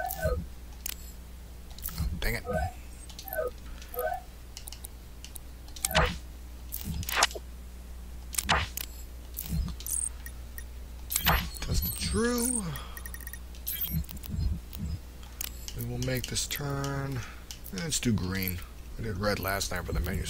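Short electronic menu clicks and blips sound as options are selected.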